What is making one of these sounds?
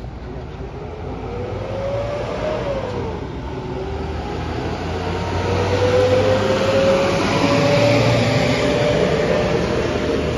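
A truck engine rumbles as the truck drives past close by.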